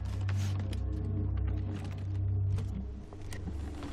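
A suitcase's latches click open.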